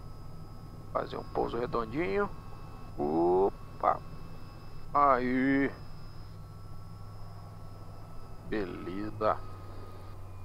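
A young woman speaks through a headset intercom.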